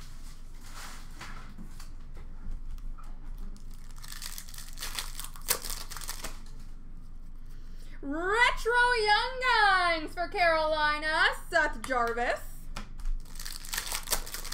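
Plastic wrappers and cards rustle and crinkle in a person's hands.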